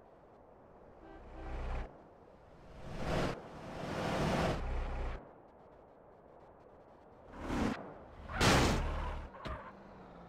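A car engine roars in bursts as it speeds up.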